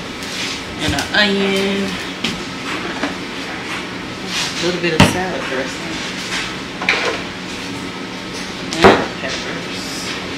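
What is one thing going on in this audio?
Jars and bottles knock down onto a countertop.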